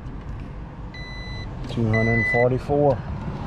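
A multimeter beeps in short, high tones.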